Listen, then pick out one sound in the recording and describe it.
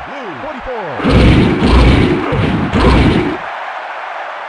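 Football players crash into each other.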